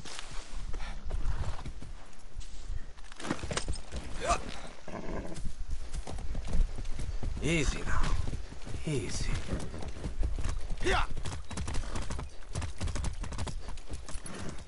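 Horse hooves clop along at a trot.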